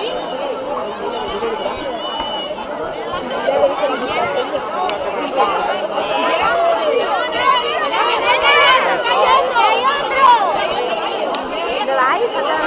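Many young children chatter and shout excitedly nearby.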